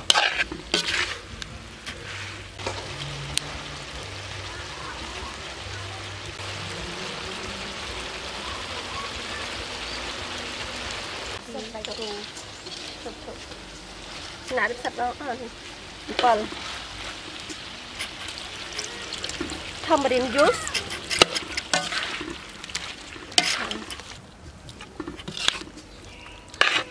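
A metal spatula scrapes and clanks against a pan.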